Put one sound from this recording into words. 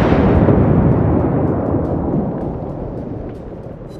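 Shells explode with dull thuds.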